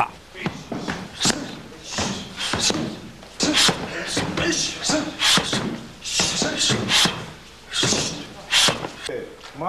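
A kick thuds against a padded shield.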